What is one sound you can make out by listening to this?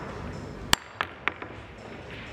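Pool balls clack together.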